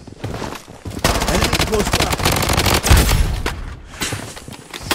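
Rapid gunshots ring out close by.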